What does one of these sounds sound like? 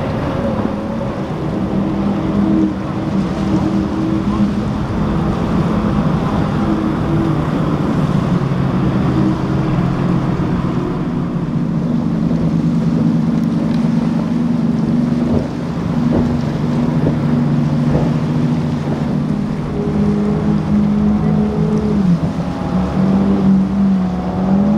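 Powerful outboard engines roar as speedboats race past.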